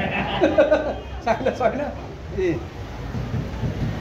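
A middle-aged man laughs close by.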